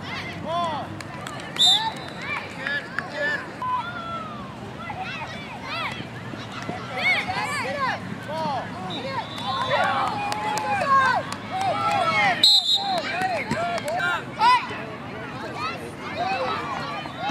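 Young players and onlookers shout and cheer outdoors.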